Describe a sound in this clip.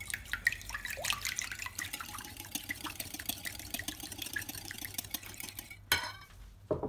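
A wire whisk clicks and scrapes rapidly against a glass bowl.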